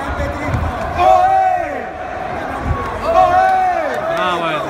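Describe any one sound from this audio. Spectators shout loudly.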